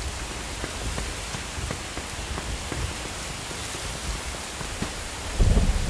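Footsteps tap on hard pavement at a walking pace.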